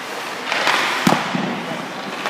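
A hockey stick knocks sharply on the ice.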